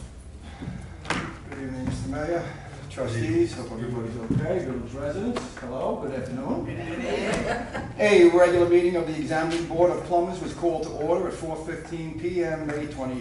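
A middle-aged man speaks calmly into a microphone in a room with a slight echo.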